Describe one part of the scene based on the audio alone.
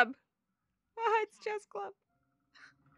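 A young woman speaks closely into a microphone with animation.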